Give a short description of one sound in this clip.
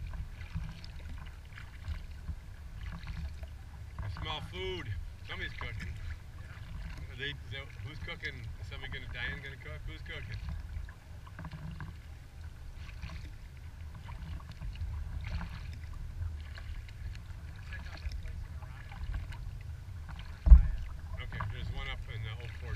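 Wind rumbles across the water outdoors.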